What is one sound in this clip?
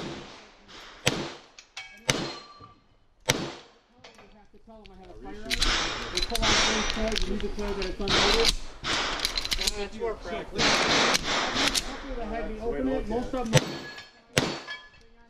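A pistol fires shots with sharp cracks.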